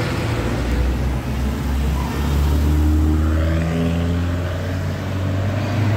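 A sports car engine revs loudly close by.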